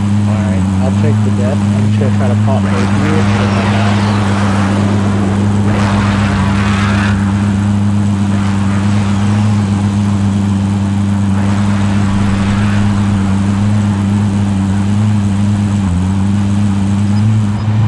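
A vehicle engine hums steadily as it drives along.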